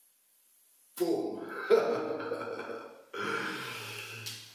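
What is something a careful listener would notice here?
A middle-aged man talks cheerfully close by.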